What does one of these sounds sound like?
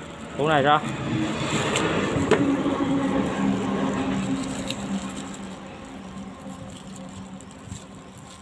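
A plastic bag crinkles and rustles in someone's hands.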